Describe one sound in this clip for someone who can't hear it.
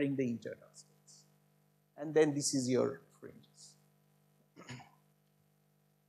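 A man lectures through a microphone, speaking calmly in short bursts.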